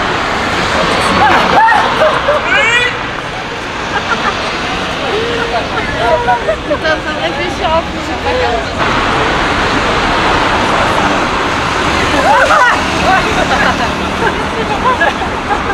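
Young women talk and laugh close by while walking past.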